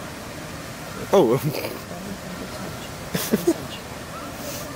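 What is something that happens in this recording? A man close by laughs and chats.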